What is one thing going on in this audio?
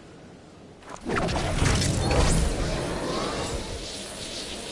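A glider snaps open with a loud whoosh.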